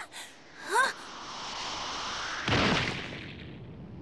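Rocks burst apart with a loud rumbling blast.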